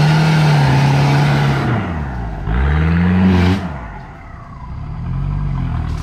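A motorbike engine revs loudly nearby, rising and falling in pitch as it passes.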